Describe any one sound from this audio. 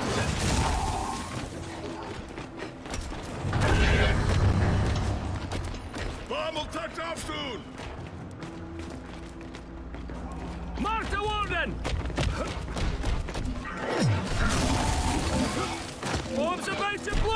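Gunfire and explosions rattle in a video game.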